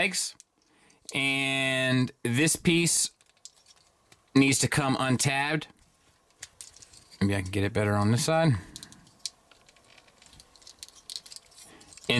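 Small plastic parts click softly as they are moved and snapped into place.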